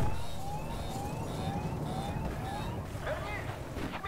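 Water splashes as an aircraft plunges into it.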